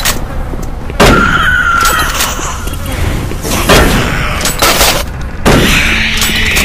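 A shotgun fires loud booming blasts.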